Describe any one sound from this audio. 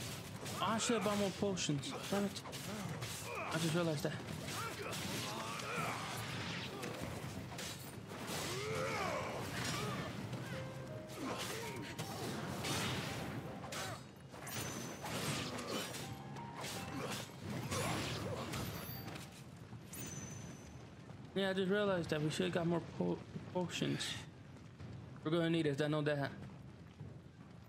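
Swords clash and strike in quick bursts.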